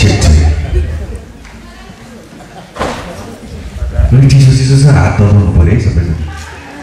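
A man speaks loudly into a microphone, heard through loudspeakers in an echoing hall.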